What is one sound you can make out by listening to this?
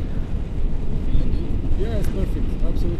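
A man speaks close by, raising his voice over the wind.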